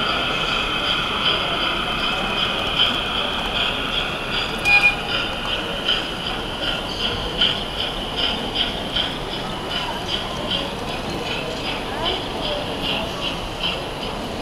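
A model freight train's wheels click over rail joints.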